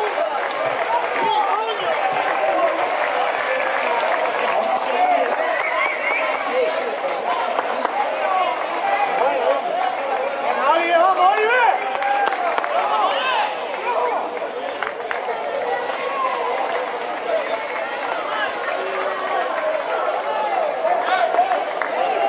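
A crowd of men talks and shouts nearby outdoors.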